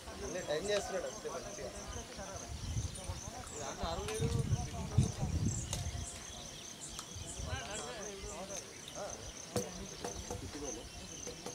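Men talk and call out across an open field, heard from a distance.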